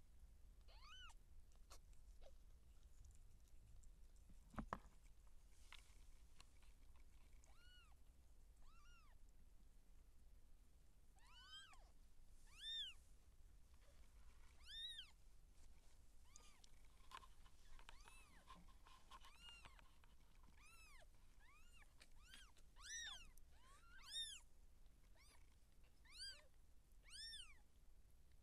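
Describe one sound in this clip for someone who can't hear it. A newborn kitten gives high, thin mews again and again.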